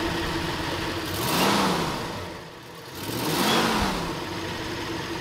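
An engine revs up sharply twice and falls back.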